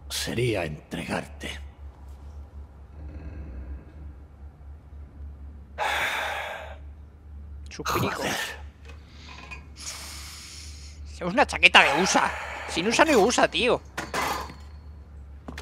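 An elderly man speaks in a low, gruff voice.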